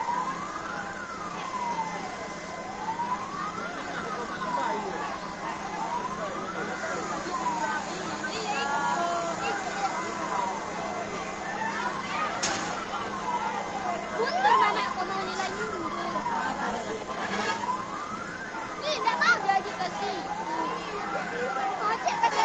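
A siren wails steadily up and down, close by.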